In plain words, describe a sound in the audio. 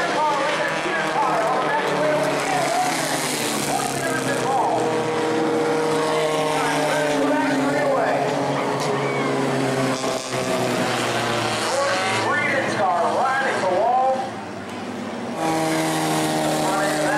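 Race car engines roar as the cars pass.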